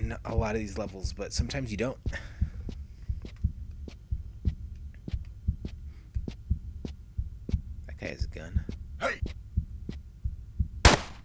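Soft footsteps thud at a steady, even pace.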